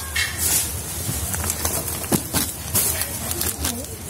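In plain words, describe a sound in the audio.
Stiff paper rustles as a sack is handled.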